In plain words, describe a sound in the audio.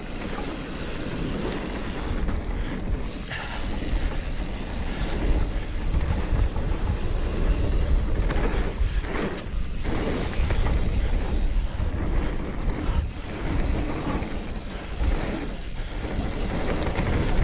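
Wind rushes loudly past a microphone.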